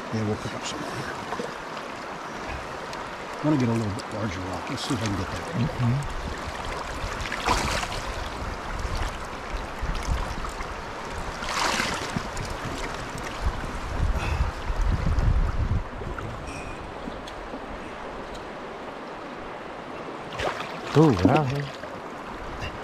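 A shallow stream ripples and gurgles steadily outdoors.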